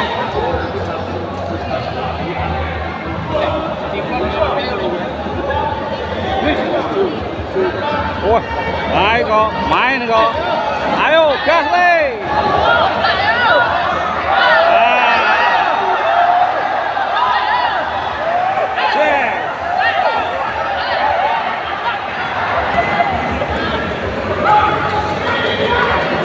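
A crowd of men and women chatters and calls out nearby.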